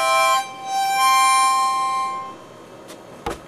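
A child plays a harmonica close by, with loud, steady notes.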